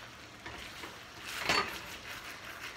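A wooden spoon scrapes and stirs pasta in a metal pan.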